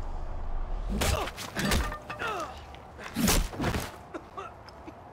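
A baton strikes a man with heavy thuds.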